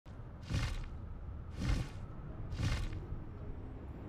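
Large wings flap with heavy whooshing beats.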